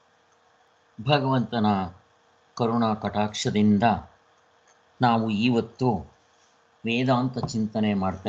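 A man speaks calmly in bursts through an online call.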